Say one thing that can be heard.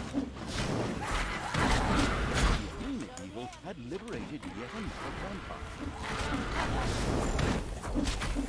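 Magic spells burst and whoosh.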